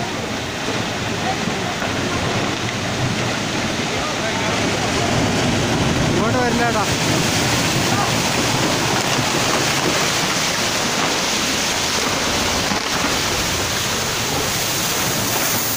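A mudslide roars and rumbles down a hillside.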